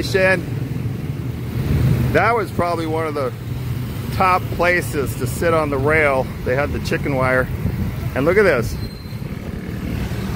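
Motorcycle engines putter past close by.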